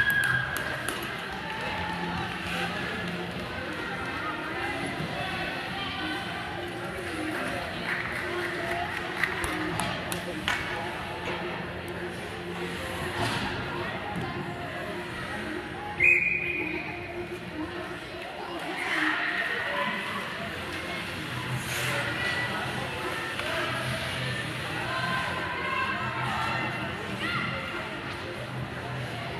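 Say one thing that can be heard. Skates scrape and swish across the ice in a large echoing arena.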